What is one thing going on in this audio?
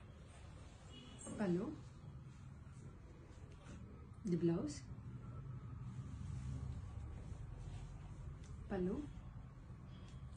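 Silk fabric rustles as it is unfolded and draped.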